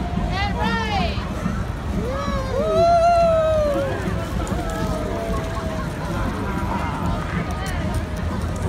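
A crowd of people chatters and whoops loudly outdoors.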